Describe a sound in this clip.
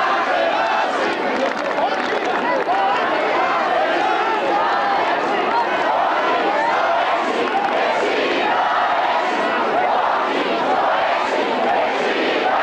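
A large outdoor crowd of men and women chants and shouts loudly together.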